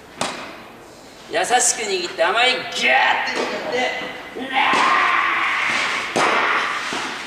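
A tennis ball is struck sharply with a racket in an echoing indoor hall.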